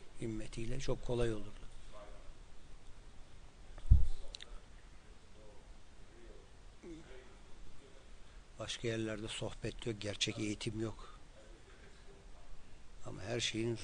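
A man speaks calmly and with emphasis, close by, with pauses.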